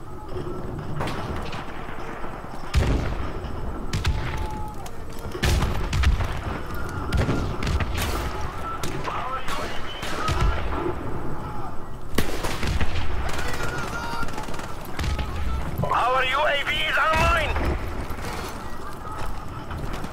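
Gunshots crack and boom in quick bursts.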